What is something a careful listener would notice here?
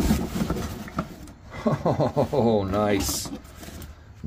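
Small plastic toys rattle inside a box.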